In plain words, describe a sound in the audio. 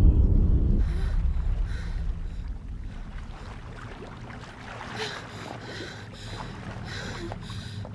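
Water splashes gently as a young woman moves through a pool.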